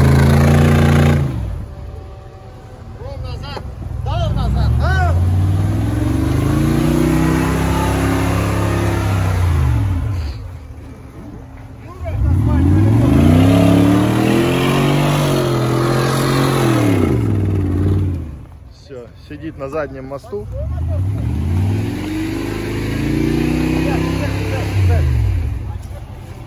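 An off-road engine revs up and down in repeated surges.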